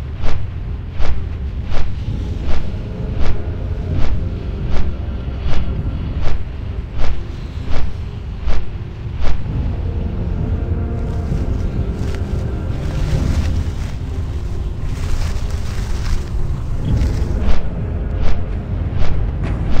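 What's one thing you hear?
Large wings flap steadily in a regular beat.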